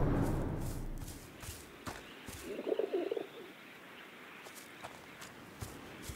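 Footsteps crunch softly on grass and gravel.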